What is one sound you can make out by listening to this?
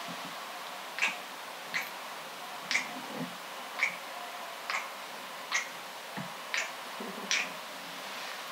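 A bed creaks in a steady rhythm.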